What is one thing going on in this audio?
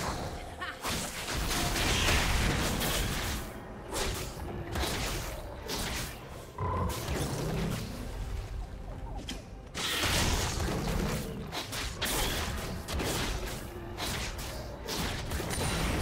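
Game spells crackle and whoosh in a fight.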